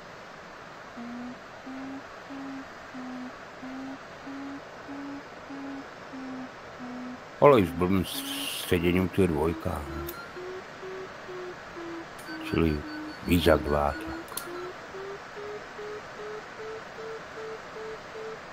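A glider's variometer beeps in quick pulses that slowly rise in pitch.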